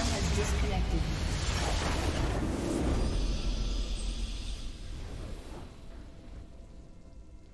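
A loud game explosion roars and rumbles, then slowly fades away.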